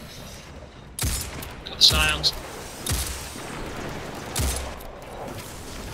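Gunfire from a game's weapons cracks in sharp bursts.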